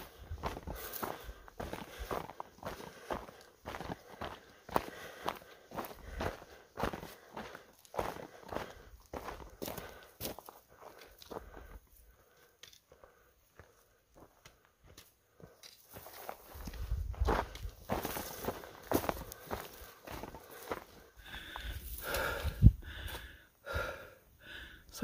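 Footsteps crunch on a dry dirt trail.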